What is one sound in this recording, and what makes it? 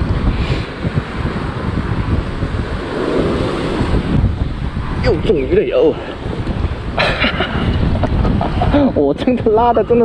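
Waves break and wash against rocks.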